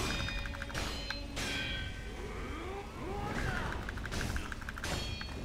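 Swords clash with sharp metallic rings.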